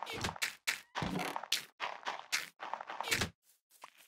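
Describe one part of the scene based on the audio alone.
A wooden chest creaks open in a game.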